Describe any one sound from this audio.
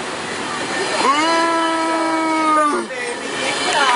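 A train horn blares in a long blast.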